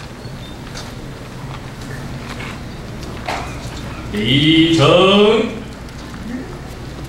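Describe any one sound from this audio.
A crowd of people murmurs in a large hall.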